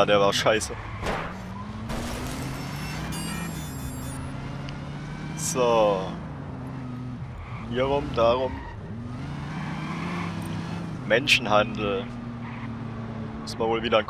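Tyres screech as a car skids.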